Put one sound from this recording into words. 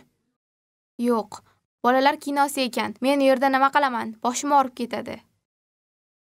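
A young girl speaks calmly, close by.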